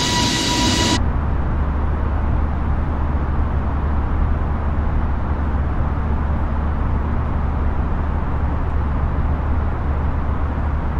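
Jet engines rumble low and muffled inside a cabin.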